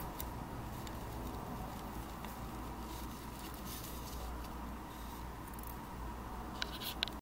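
A small plastic switch clicks and taps as it is handled.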